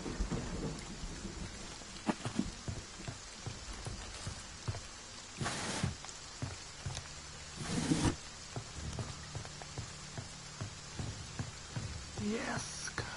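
Footsteps thud slowly on a wooden floor.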